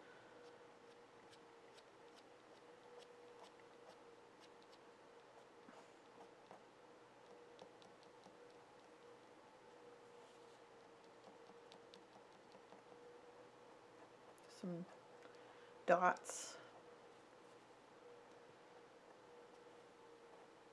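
A fine brush strokes softly across paper.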